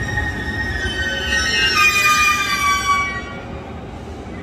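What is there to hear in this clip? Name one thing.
Train brakes squeal with falling whines.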